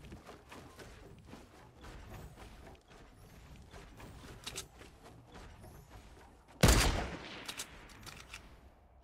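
Building pieces in a game snap into place with short clicks.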